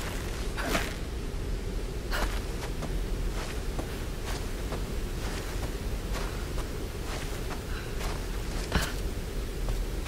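A waterfall rushes steadily.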